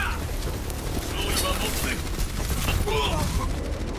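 Explosions boom and crackle in a fast game firefight.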